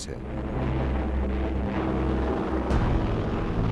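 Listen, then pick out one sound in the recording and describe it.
Propeller plane engines drone overhead.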